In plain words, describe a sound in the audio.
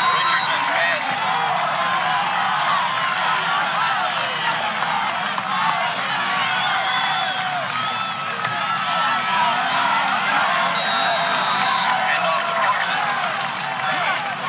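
A large crowd cheers and shouts outdoors.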